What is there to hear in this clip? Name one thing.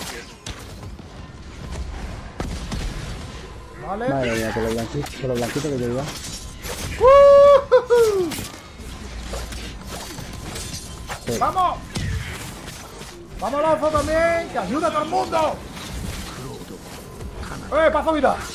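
Swords clash in a game fight.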